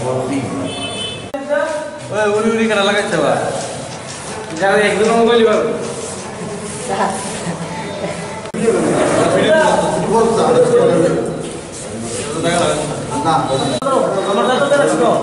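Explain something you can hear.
A man speaks steadily to a room.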